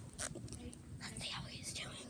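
A young girl speaks softly close to the microphone.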